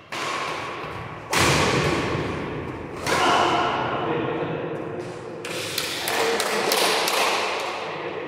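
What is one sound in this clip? Sounds ring and echo in a large hall.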